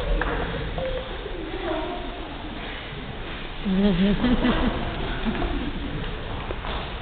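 Young men and women talk and call out on a stage in an echoing hall.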